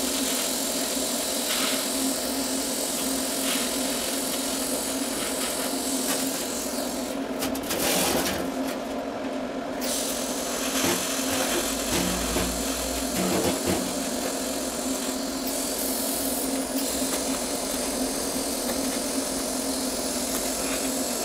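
An electric welding arc hisses and crackles steadily.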